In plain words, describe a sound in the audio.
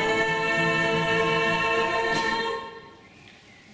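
A choir of young women sings a sustained chord in a large hall.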